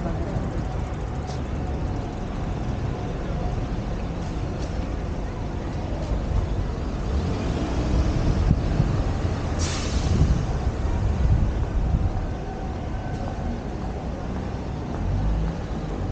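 Wind rumbles against the microphone.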